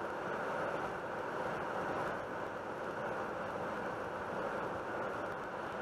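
A car's tyres hum steadily on the road at speed, heard from inside.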